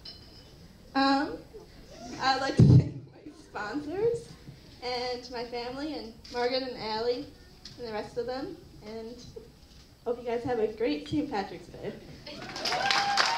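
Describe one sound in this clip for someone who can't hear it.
A young woman speaks through a microphone over loudspeakers in a hall.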